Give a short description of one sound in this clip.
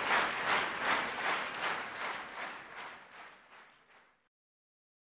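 An audience applauds and the clapping slowly fades away.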